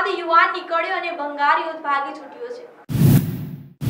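A young woman speaks clearly and calmly into a microphone.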